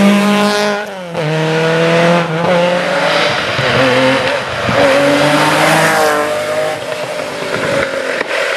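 A Porsche 911 rally car's flat-six engine howls past at full throttle.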